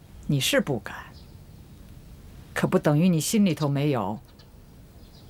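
An elderly woman speaks calmly and sternly nearby.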